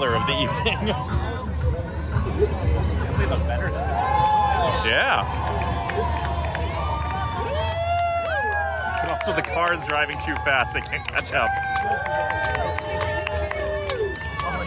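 Children and adults shout and whoop excitedly nearby.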